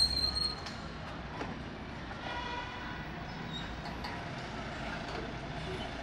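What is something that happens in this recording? Scooters buzz past at a crossing.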